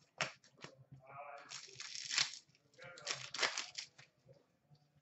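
Plastic wrapping crinkles and tears.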